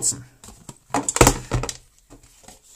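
A plastic power adapter knocks and rustles as it is handled.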